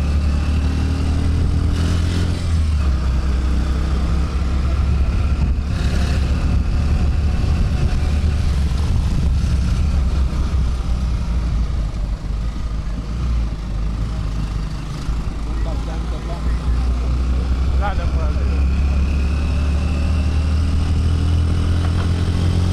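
A motorcycle engine rumbles close by.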